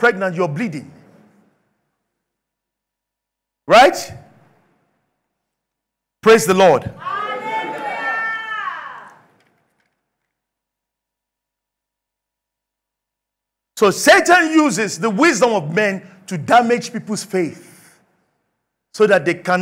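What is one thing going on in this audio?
A man preaches with animation into a microphone, in bursts with long pauses.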